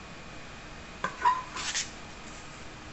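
A wooden board knocks down with a clatter.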